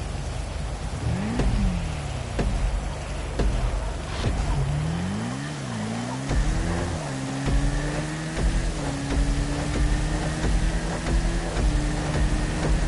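A motorbike engine idles and revs, rising and falling in pitch.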